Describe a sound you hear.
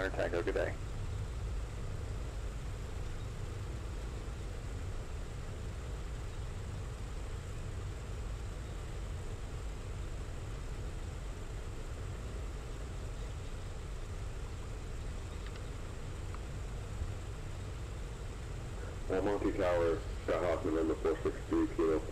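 An aircraft engine drones with a steady low rumble.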